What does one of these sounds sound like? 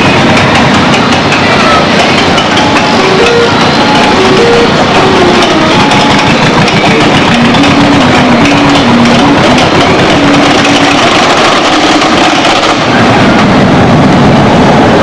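A roller coaster rattles and clatters loudly along its track.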